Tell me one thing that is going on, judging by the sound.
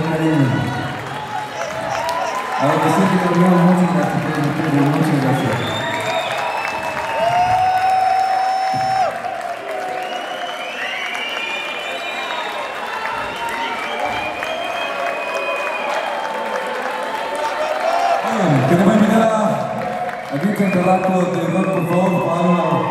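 A group of men cheer and shout loudly in a large echoing hall.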